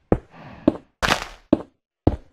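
A block breaks with a short crunch.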